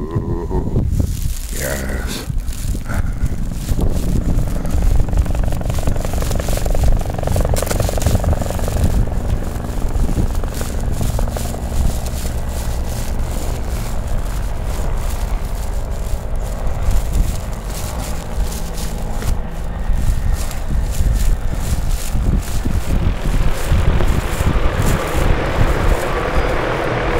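A plastic bag rustles and crinkles as it is carried along.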